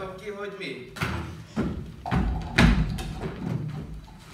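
Bodies thud onto a wooden stage floor during a scuffle.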